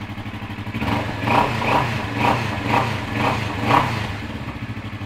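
A motorcycle engine revs up several times in quick bursts.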